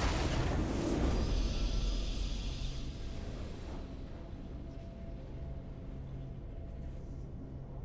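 A triumphant fanfare plays and settles into a soft hum.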